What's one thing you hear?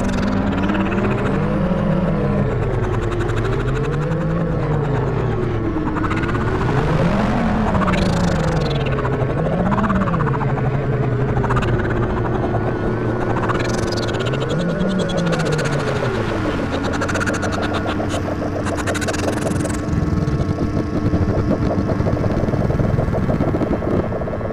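Electronic synthesizer tones drone and slowly bend up and down in pitch.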